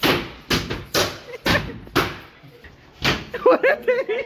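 Sharp slaps and thumps ring out during a scuffle.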